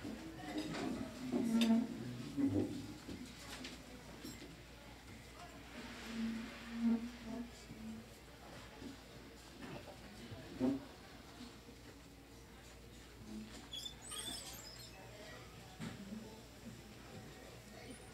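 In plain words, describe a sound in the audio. Elderly men and women chat at a distance.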